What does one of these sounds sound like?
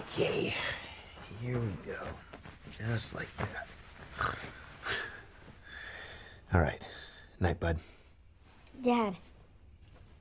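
A man speaks quietly and closely, in a low, intimate voice.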